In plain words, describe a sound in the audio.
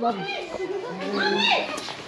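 A young child babbles close by.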